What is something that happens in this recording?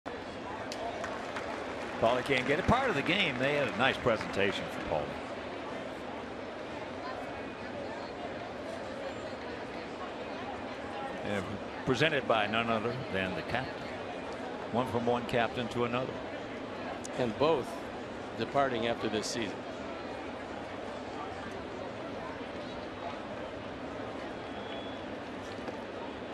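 A large outdoor crowd murmurs steadily in the background.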